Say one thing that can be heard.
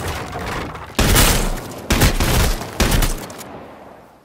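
A shotgun fires several loud blasts.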